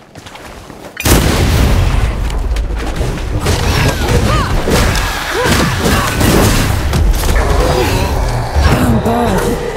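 A large creature growls and roars.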